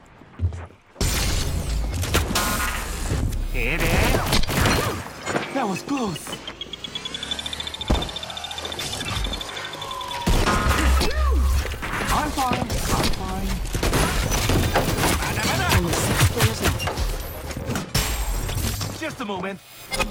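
An electric gun crackles and zaps in quick bursts.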